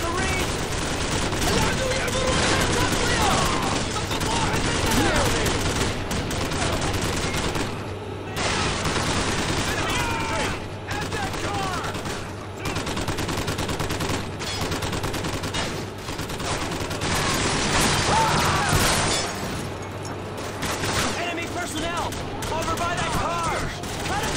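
Gunfire cracks in bursts nearby.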